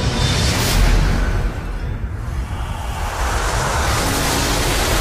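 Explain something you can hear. Magic smoke swirls with a deep, roaring whoosh.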